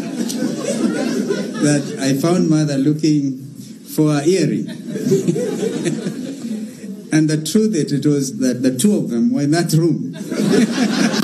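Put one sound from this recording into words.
A middle-aged man speaks with animation into microphones in an echoing room.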